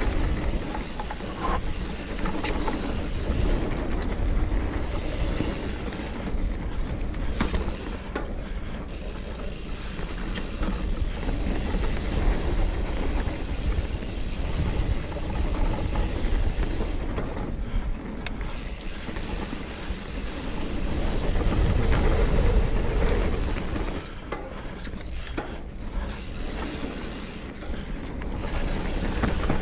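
Bike tyres roll and crunch over a dirt trail.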